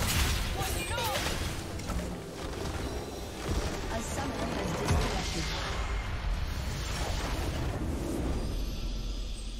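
Game spell effects crash and whoosh loudly.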